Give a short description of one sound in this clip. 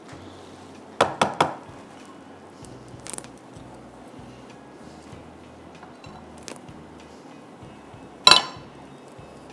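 A spatula scrapes and clinks against a frying pan.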